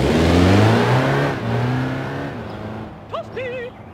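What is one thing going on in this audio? A car engine roars as a car speeds past.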